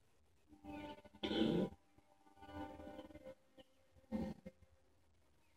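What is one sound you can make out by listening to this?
A deep, robotic male voice speaks slowly through a television speaker.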